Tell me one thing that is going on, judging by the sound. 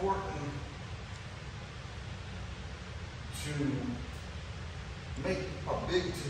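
A man speaks calmly and slowly in a room with a slight echo.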